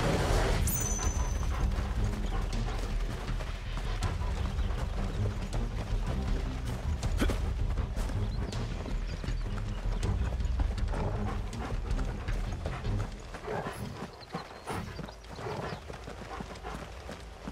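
Footsteps run over grass and a stone path.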